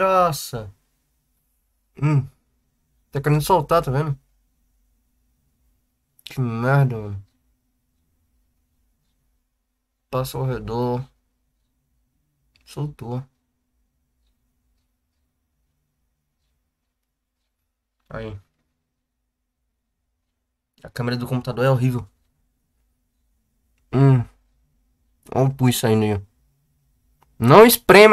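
A young man speaks close to the microphone in short, calm bursts with long pauses.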